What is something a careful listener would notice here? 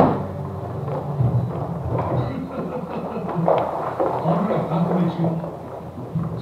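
A mop swishes back and forth across a wooden floor.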